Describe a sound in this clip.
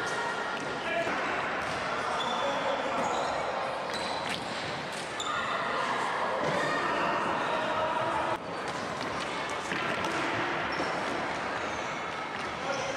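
Sticks clack against a ball on a hard floor in a large echoing hall.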